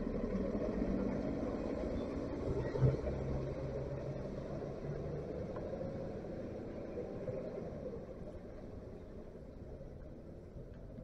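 A bus engine rumbles low nearby and slowly fades.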